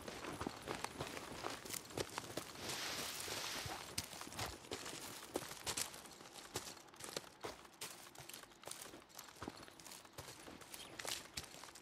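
Footsteps crunch through dry grass and brush at a steady pace.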